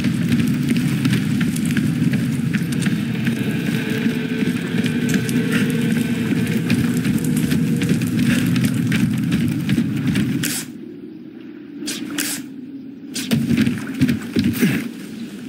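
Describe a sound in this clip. Footsteps thud on wooden planks and rocky ground.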